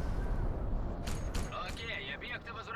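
A heavy machine gun fires rapid bursts close by.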